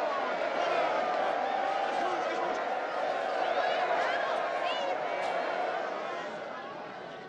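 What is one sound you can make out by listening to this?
A crowd of men and women cheers and shouts joyfully close by.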